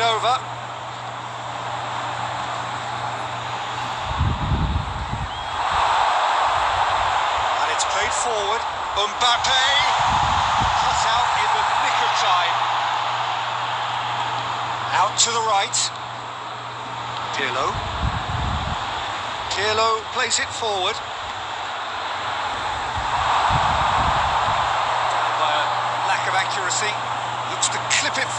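A large crowd roars steadily in a stadium, swelling and easing.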